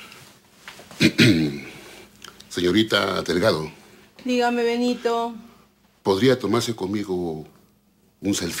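A middle-aged man speaks firmly nearby.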